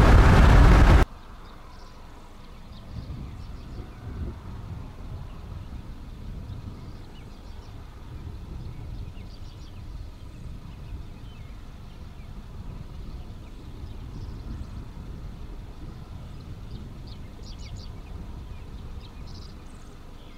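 Wind blows steadily across open ground outdoors.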